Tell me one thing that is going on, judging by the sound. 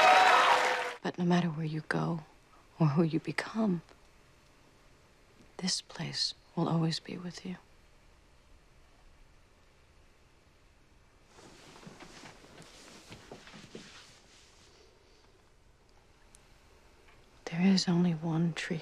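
A woman speaks softly and with emotion, close by.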